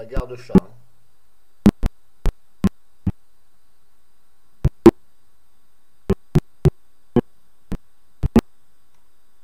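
A computer mouse clicks sharply, again and again.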